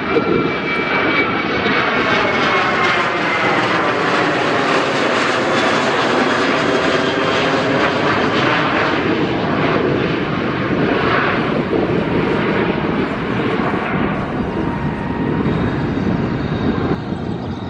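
A jet airliner roars overhead, its engines whining as it passes close by and fades.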